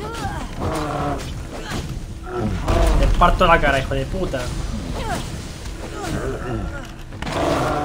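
Heavy blows thud during a fight.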